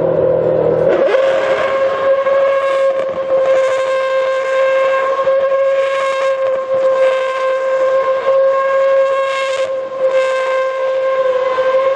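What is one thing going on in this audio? A racing car engine revs hard and holds a high steady whine while the car spins in circles.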